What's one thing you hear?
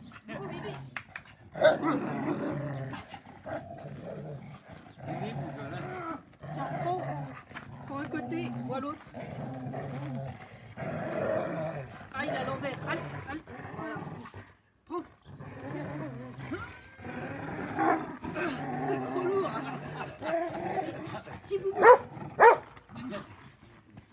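Dogs growl and snarl playfully while tugging a rope.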